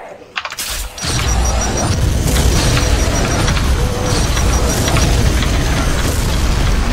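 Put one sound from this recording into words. A heavy energy gun fires in rapid loud bursts.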